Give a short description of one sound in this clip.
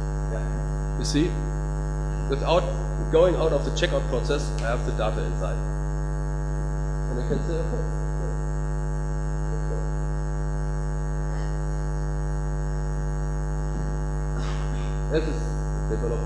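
A young man speaks through a microphone, with pauses between phrases.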